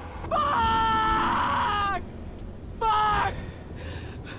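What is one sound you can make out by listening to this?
A young man shouts loudly in anger, close by.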